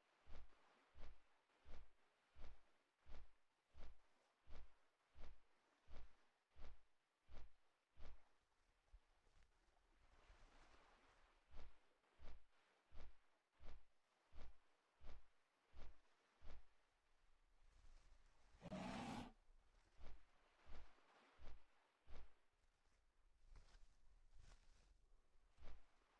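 Large wings beat in a steady, regular rhythm.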